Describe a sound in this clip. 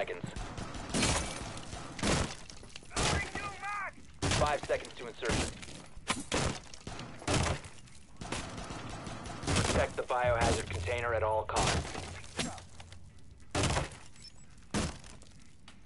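Explosive charges go off in loud, sharp bangs.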